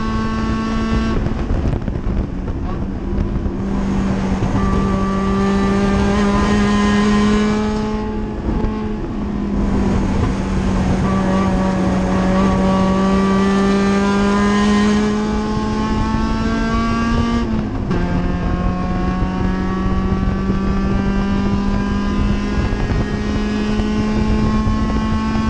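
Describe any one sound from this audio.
A racing car engine roars loudly from inside the cockpit, rising and dropping in pitch as it shifts gears.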